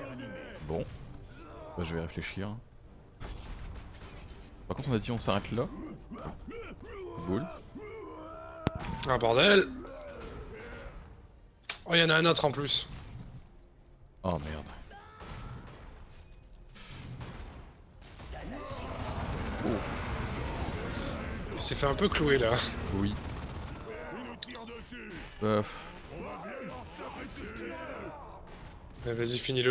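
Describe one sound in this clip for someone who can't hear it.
Guns fire in rapid bursts during a battle.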